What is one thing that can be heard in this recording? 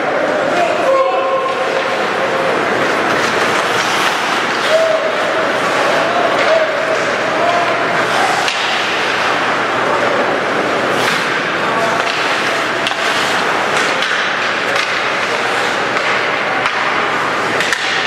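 A crowd cheers and shouts in a large echoing rink.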